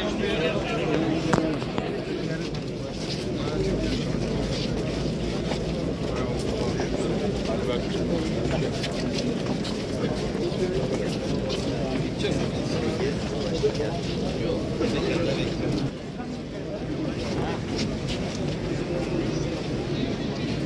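Many footsteps shuffle on stone stairs.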